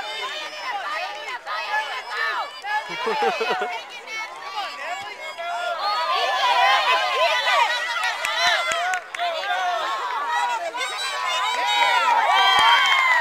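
Young children shout and squeal excitedly outdoors.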